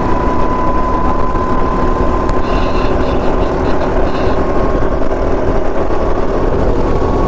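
A small kart engine buzzes loudly and steadily up close.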